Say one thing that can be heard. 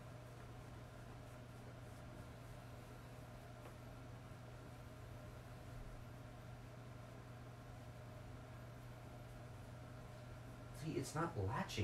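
Clothes rustle softly as they are folded.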